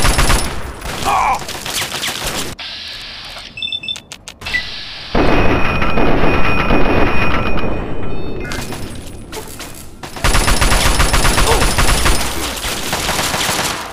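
A weapon clicks and clacks as it is reloaded.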